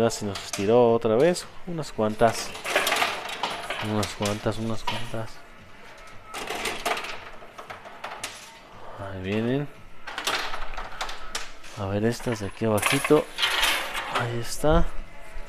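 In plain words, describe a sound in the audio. Coins clink and clatter inside a coin pusher machine.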